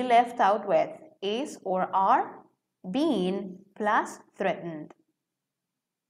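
A woman speaks calmly, as if teaching, heard through an online call.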